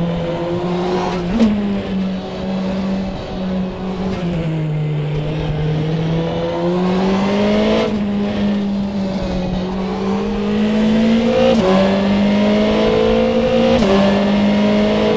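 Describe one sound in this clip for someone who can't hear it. A racing car engine roars steadily, its pitch rising through each gear and dropping with each gear change.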